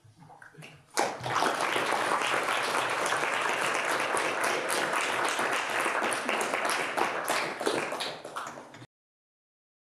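An audience applauds steadily in a large room.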